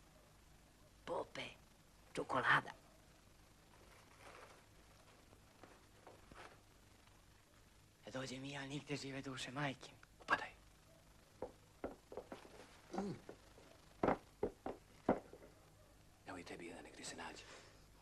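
A young man speaks in short bursts, close by.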